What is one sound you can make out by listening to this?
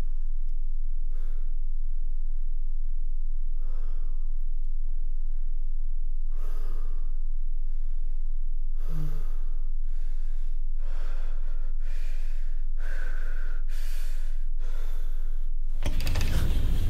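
A man breathes heavily nearby in short, anxious breaths.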